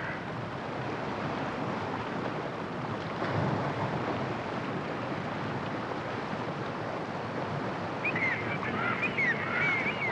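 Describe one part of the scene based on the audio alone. Water laps gently against small boat hulls.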